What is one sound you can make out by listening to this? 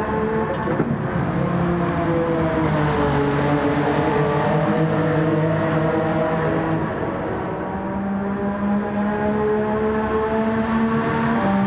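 A racing car engine roars loudly at high revs, shifting through gears.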